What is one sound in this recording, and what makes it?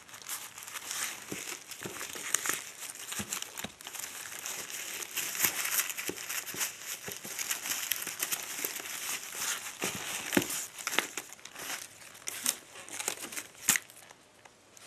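Plastic gloves rustle and crinkle.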